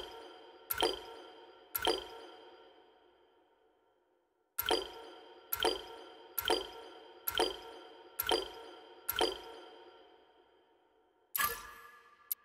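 Short bright chimes ring as menu items are selected, one after another.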